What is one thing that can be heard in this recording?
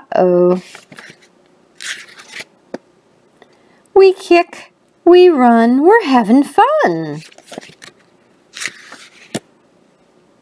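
Paper pages rustle as a page of a book is turned.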